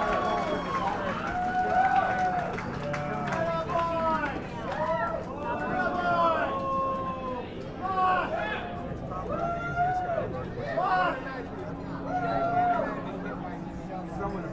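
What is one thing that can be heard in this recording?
A man sings into a microphone over a live band.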